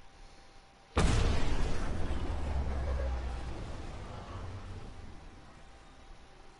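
A spaceship's engines roar past with a sudden deep whoosh that slowly fades.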